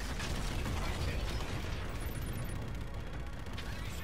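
A large explosion booms and roars.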